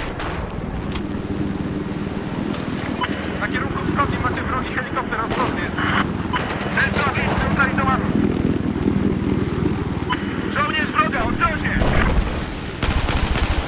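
A helicopter engine drones and its rotor thumps steadily.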